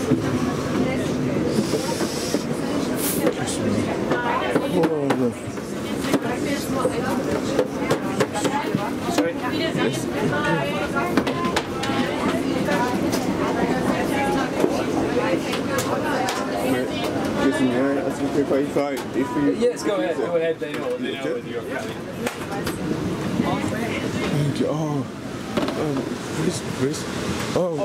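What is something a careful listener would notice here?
A steady low hum fills an aircraft cabin.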